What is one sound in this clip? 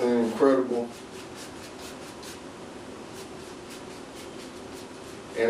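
A paintbrush brushes softly against canvas.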